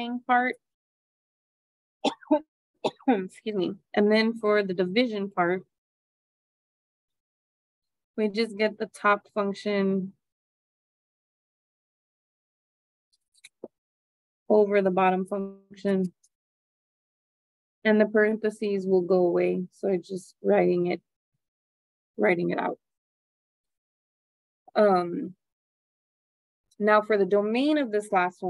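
A woman explains calmly over an online call.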